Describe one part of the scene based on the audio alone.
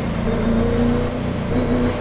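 Tyres rumble and scrape over gravel on the roadside.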